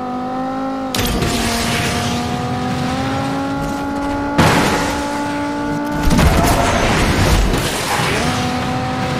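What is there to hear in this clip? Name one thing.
A boost rushes loudly in bursts.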